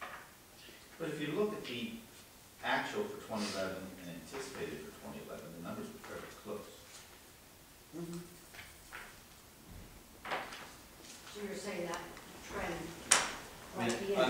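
A man speaks calmly at a distance.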